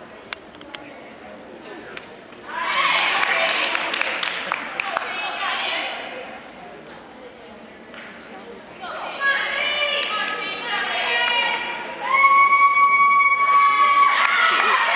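A gymnast's feet thump on a wooden beam.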